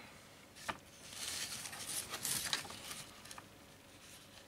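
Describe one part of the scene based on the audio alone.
Stiff leather sheets slide and rustle across a tabletop.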